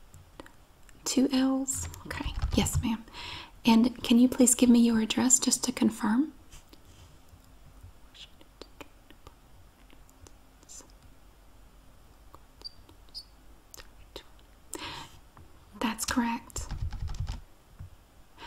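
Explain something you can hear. A middle-aged woman speaks calmly and closely into a headset microphone.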